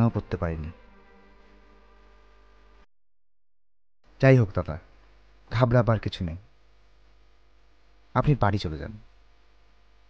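A man speaks in short, animated bursts close by.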